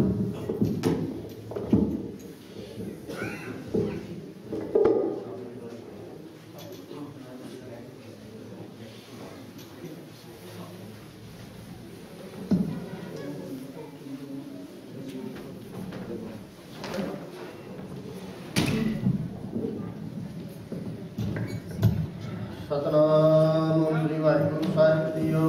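A man speaks through a loudspeaker in a reverberant room.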